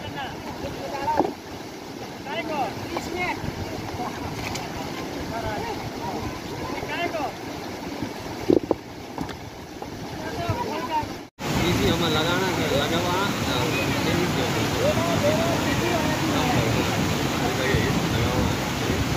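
A fast mountain river rushes over rocks.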